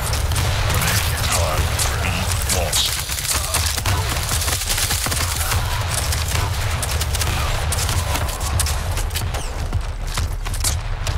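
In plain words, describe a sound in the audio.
Video game guns fire in rapid bursts.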